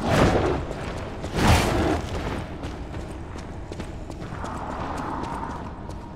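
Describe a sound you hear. Footsteps run quickly across a stone floor.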